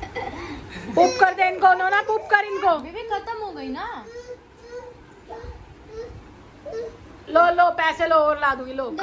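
A young woman talks to a baby in a high, playful voice close by.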